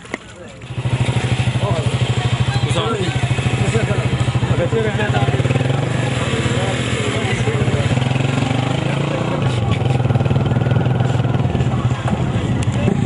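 A tractor engine chugs steadily nearby.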